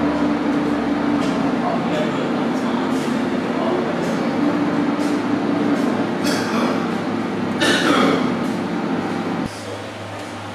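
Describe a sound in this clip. An older man talks quietly nearby.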